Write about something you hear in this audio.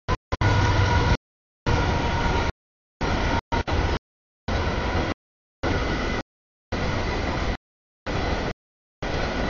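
A freight train rumbles and clatters past over the tracks.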